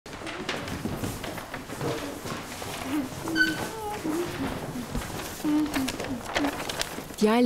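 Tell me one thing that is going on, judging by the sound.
Paper sheets rustle in children's hands.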